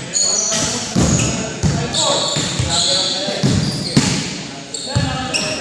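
A basketball bounces with hollow thuds.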